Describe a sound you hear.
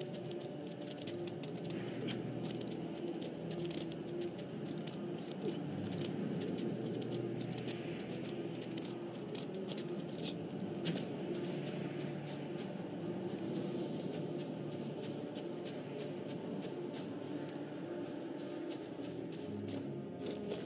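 Hands scrape and grip on icy rock while climbing.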